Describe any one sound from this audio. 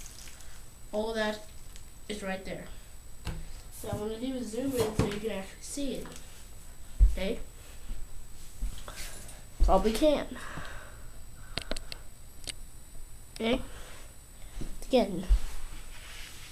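A young boy talks calmly close by.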